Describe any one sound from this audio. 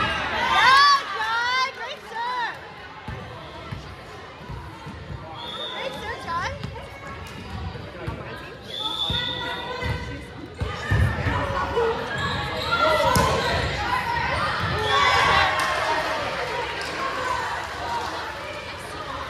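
Young women shout and cheer with excitement in a large echoing gym.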